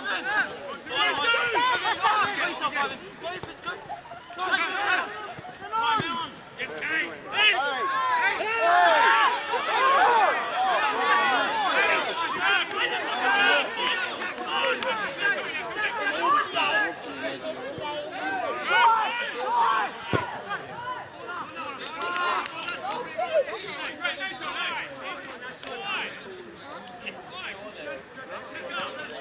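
Players shout and call to each other across an open field.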